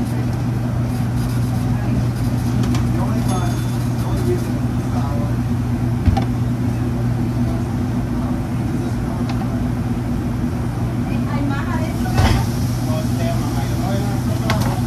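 A kitchen exhaust hood hums steadily.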